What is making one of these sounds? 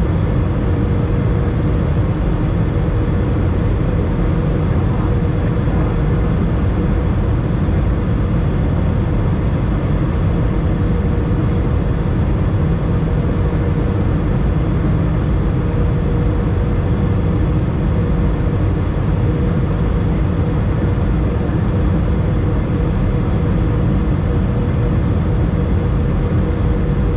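A jet engine roars steadily inside an airplane cabin with a low droning hum.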